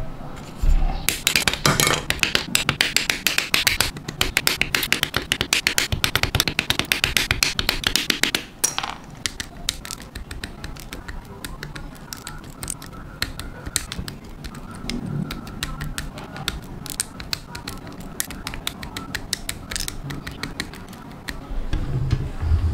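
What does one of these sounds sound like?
Hobby side cutters snip plastic model parts from a runner with sharp clicks.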